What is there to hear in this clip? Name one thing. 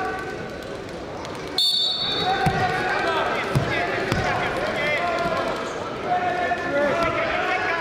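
Bodies thud and shift on a wrestling mat.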